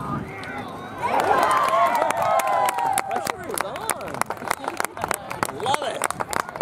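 A group of young people cheers loudly.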